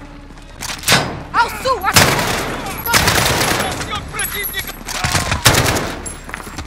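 Gunshots ring out in loud, sharp bursts.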